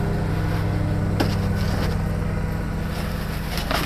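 A hand scratches and rustles through dry granules in a plastic tray.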